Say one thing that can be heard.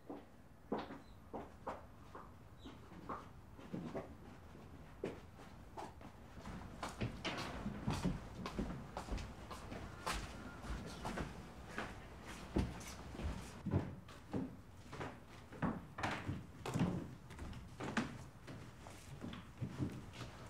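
Footsteps thud and creak on a wooden floor indoors.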